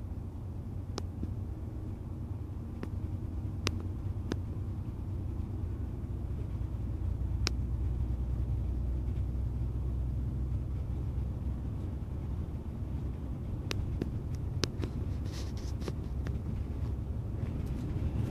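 A bus interior rattles with small clicks.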